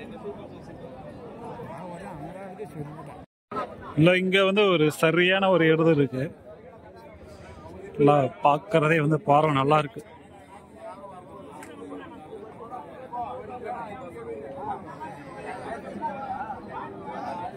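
A crowd of men chatters all around outdoors.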